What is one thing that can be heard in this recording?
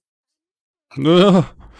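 A young man speaks up close into a microphone.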